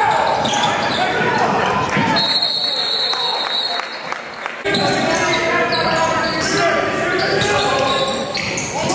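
Spectators and players shout and cheer in an echoing gym.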